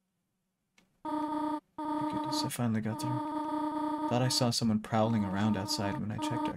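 Video game music plays with steady tones.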